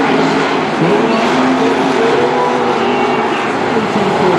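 Race car engines rev up and down.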